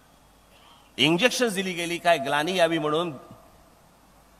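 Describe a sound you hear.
A man speaks forcefully into a microphone through loudspeakers.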